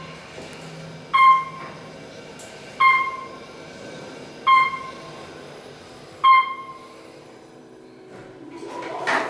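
An elevator hums low and steadily as it travels.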